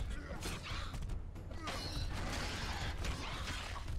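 A monster snarls and roars.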